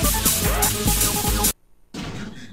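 Loud, fast electronic game music plays, then cuts off abruptly.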